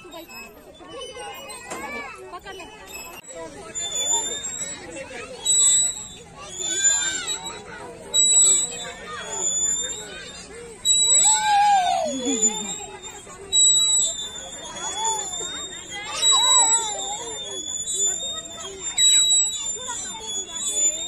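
Young children squeal and shout excitedly nearby.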